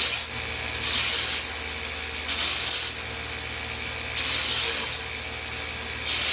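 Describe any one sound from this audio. Wood grinds loudly against a belt sander in repeated bursts.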